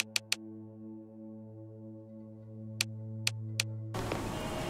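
Menu clicks tick sharply several times.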